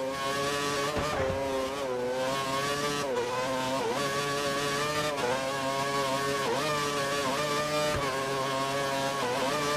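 A racing car engine screams at high revs, its pitch dipping briefly with each gear change.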